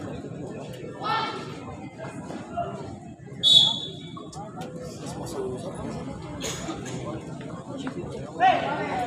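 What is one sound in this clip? Young men call out to each other across an open court.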